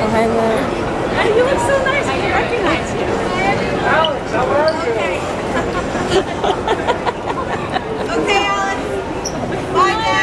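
A young woman talks excitedly nearby.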